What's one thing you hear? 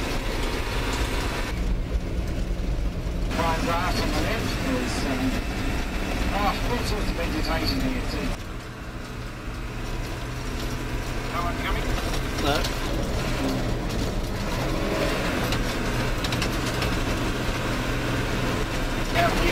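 A vehicle engine rumbles steadily as it drives along.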